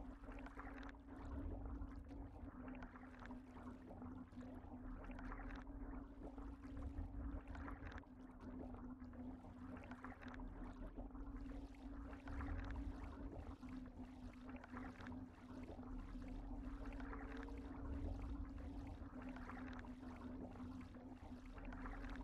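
Deep water rumbles and swirls steadily.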